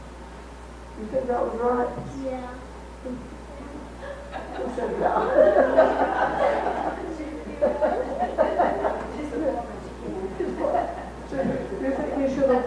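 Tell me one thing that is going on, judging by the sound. An elderly woman speaks with animation through a microphone.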